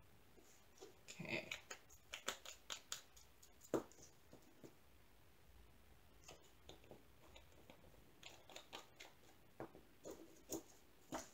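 Plastic lids twist and snap on small jars.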